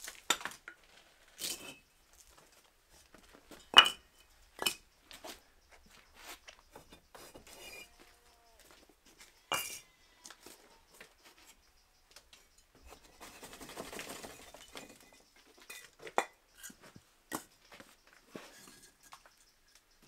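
Bricks knock and scrape against each other as they are stacked.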